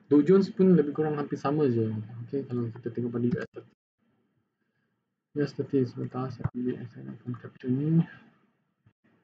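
A young man speaks calmly into a close microphone, pausing between phrases.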